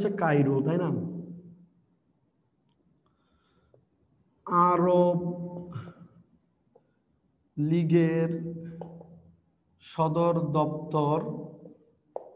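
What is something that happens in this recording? A young man speaks calmly in short phrases with pauses, close by.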